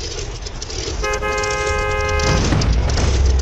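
A truck horn blares loudly.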